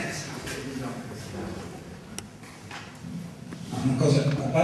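A man speaks calmly through a microphone in a room with some echo.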